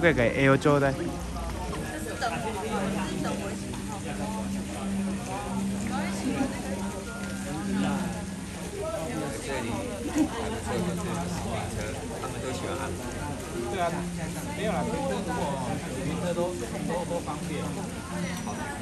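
People chatter in the background.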